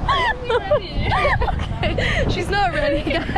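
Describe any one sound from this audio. A second young woman talks excitedly close to a microphone.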